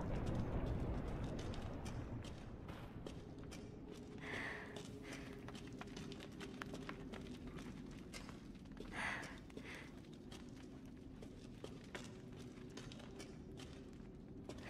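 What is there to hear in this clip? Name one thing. Footsteps tread on a stone floor in an echoing passage.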